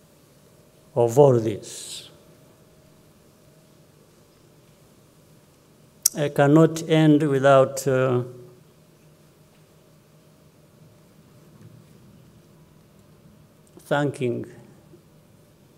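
An older man speaks slowly and calmly into a microphone, with long pauses.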